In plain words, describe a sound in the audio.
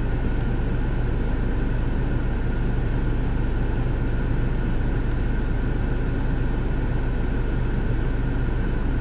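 A motorboat engine drones steadily nearby.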